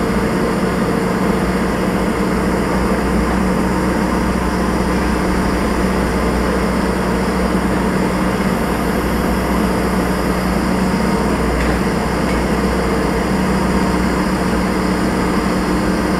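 A heavy diesel engine rumbles steadily from inside the cab of a working machine.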